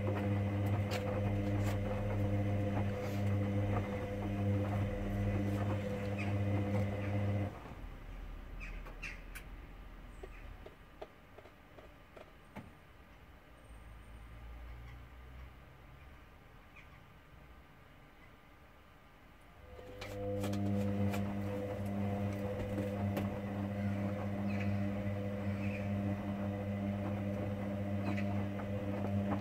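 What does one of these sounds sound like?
Laundry tumbles and thumps softly inside a spinning drum.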